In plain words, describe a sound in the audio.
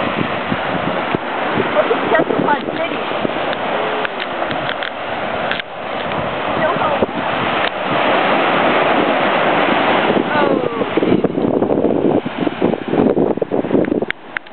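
Waves wash steadily onto a beach outdoors in wind.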